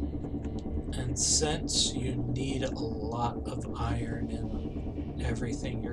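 A man speaks into a microphone, close and calm.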